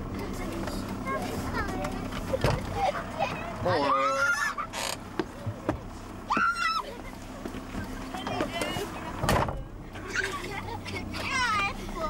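A man calls out from outside a vehicle.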